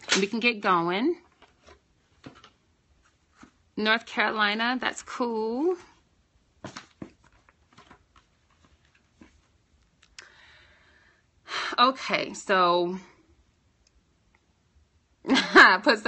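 A young woman talks casually and close to the microphone, in short bursts with pauses.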